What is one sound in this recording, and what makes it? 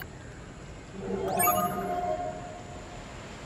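A bright electronic chime rings out and fades.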